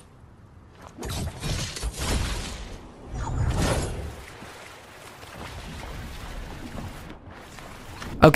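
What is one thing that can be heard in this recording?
Wind rushes past a skydiving figure.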